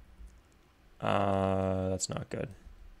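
A short electronic game tone sounds.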